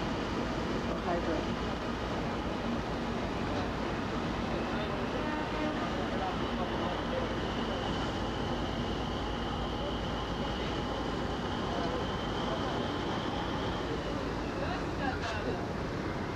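Water churns and splashes in a ship's wake.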